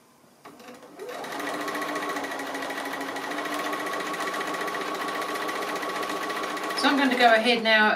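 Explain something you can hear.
A sewing machine hums and whirs steadily as it stitches.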